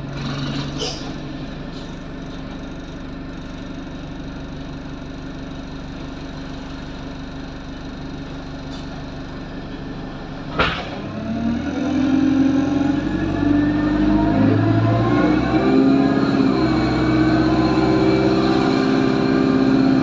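A bus rattles and rumbles over the road.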